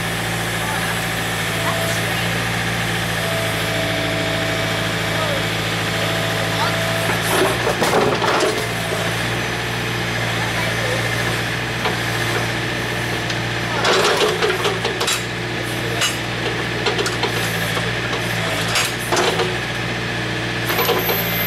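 A digger's diesel engine runs with a steady low rumble.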